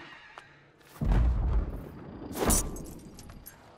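A heavy weapon swings through the air with a whoosh and strikes with a thud.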